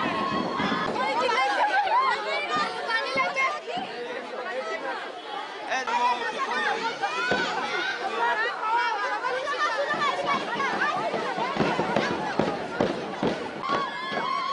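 Girls laugh and cheer loudly.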